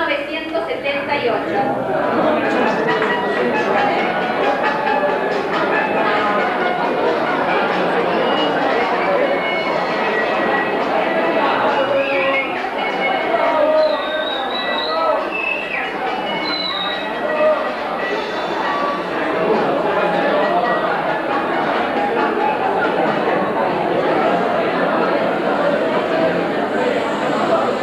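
A crowd of people chatter loudly in an echoing hall.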